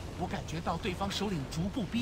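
A dragon breathes a roaring gust of fire.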